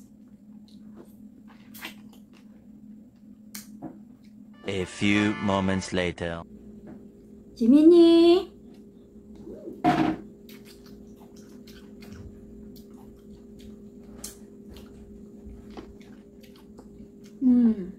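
A young woman chews and bites fruit close to the microphone with small wet crunches.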